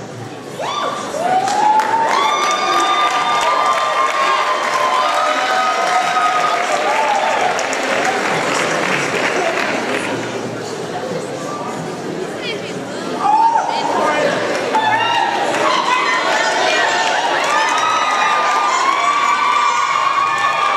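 A large choir of young men and women sings together in an echoing hall.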